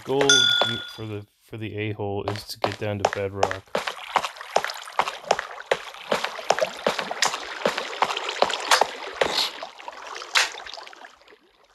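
Footsteps crunch steadily on gravel and stone.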